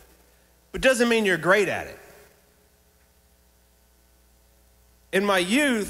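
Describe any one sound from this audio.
A man speaks with animation into a microphone, heard through loudspeakers.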